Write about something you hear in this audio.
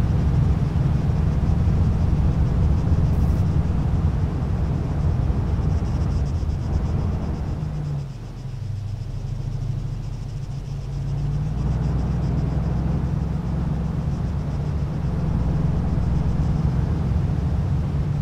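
A heavy truck engine rumbles steadily and briefly drops in pitch, then picks up again.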